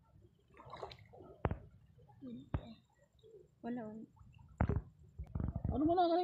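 Water splashes softly around wading legs.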